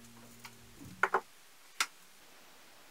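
Metal scissors clack down onto a table.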